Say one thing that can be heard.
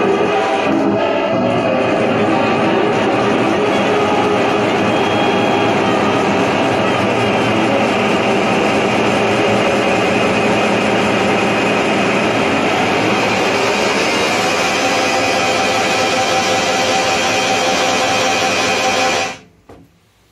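A saxophone plays loudly and continuously.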